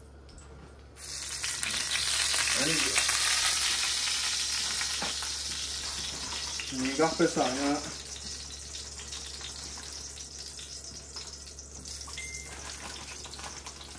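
Hot oil sizzles steadily in a frying pan.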